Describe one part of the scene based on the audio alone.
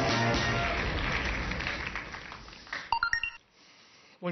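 An audience applauds and the applause fades.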